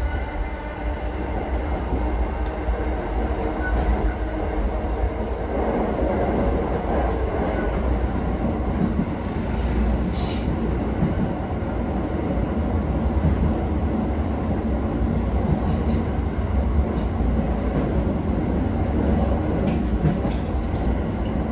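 Train wheels clatter and rattle over rail joints.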